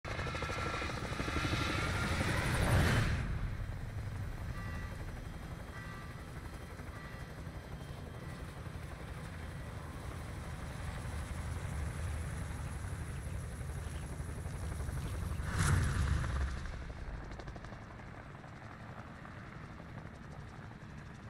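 Helicopter rotors thump and roar steadily.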